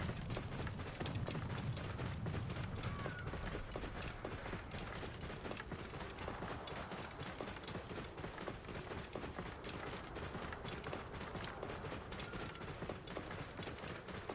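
Horse hooves gallop steadily over a dirt track.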